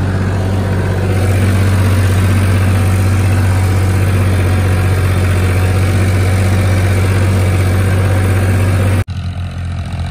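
A diesel tractor engine drones under load up close.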